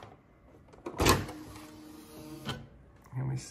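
A typewriter roller ratchets as paper is wound through.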